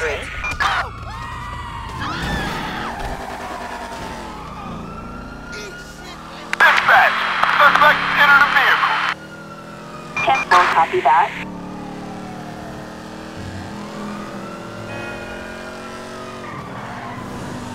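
A car engine revs and roars as the car speeds away.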